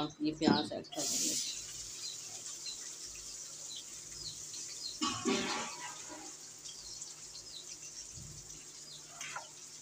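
Onions sizzle steadily in hot oil.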